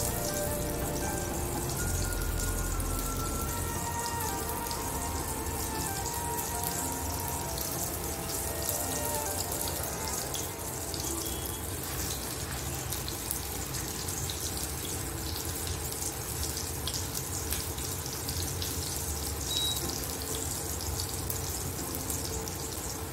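Meat patties sizzle and crackle in hot oil.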